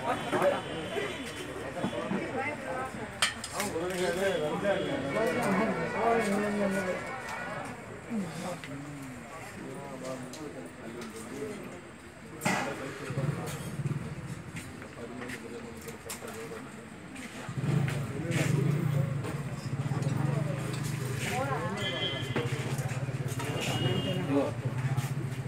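A metal serving dish clinks now and then.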